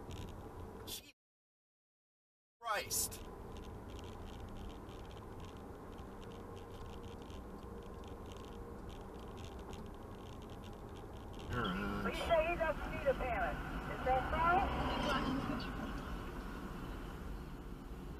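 A car drives along a road, with a low steady rumble heard from inside the car.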